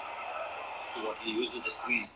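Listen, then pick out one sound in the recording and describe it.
A stadium crowd roars from a cricket game.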